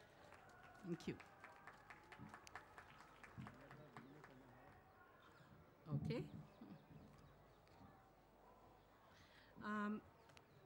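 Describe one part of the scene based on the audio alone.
A middle-aged woman speaks into a microphone over a loudspeaker.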